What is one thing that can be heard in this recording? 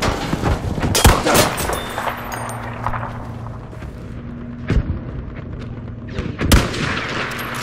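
A rifle fires a loud shot with a sharp crack.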